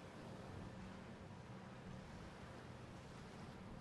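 Waves wash gently against a rocky shore.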